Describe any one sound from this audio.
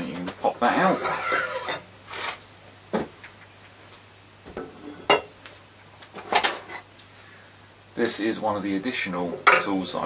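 A metal bar knocks and clanks against a machine.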